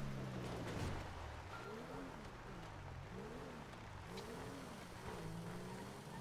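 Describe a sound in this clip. A car engine revs up and down as the car skids and drifts on sand.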